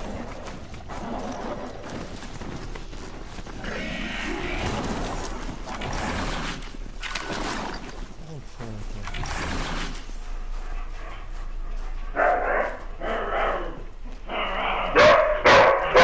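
Leaves and branches rustle as someone pushes through dense brush.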